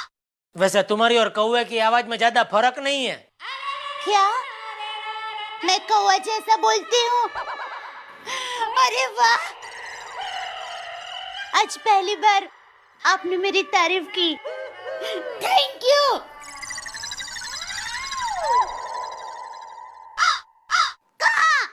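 A young woman sings with feeling, close by.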